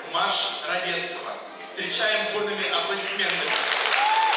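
A man announces loudly through a microphone and loudspeakers in a large hall.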